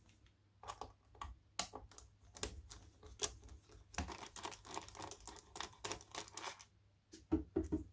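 A screwdriver clicks and scrapes as it turns a small screw.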